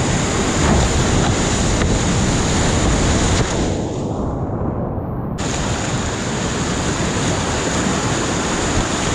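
Whitewater rapids roar loudly and close by, briefly muffled as if going under the water.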